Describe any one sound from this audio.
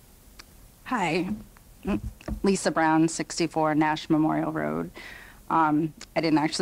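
A woman speaks calmly into a microphone, heard through a loudspeaker in a large room.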